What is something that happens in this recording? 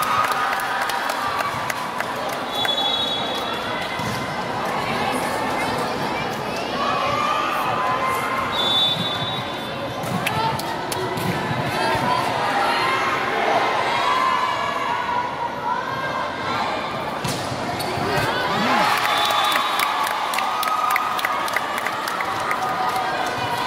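A crowd chatters and cheers throughout a large echoing hall.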